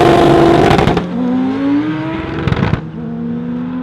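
A racing car's engine climbs in pitch as it accelerates up through the gears.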